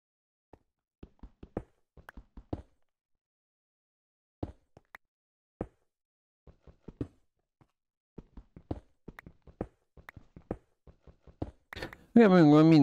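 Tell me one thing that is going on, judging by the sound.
A pickaxe chips at stone in quick, short taps.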